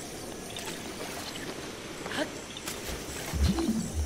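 Water splashes as a character wades.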